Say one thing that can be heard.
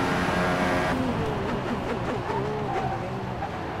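A racing car engine drops in pitch and revs up and down as the car slows.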